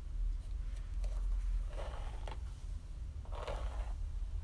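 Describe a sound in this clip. A hairbrush swishes through long hair in slow strokes.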